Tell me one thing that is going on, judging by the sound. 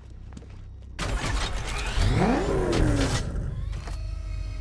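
A car engine roars loudly and revs up.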